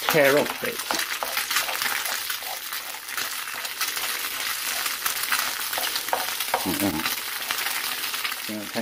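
A wooden spoon scrapes and taps against a frying pan.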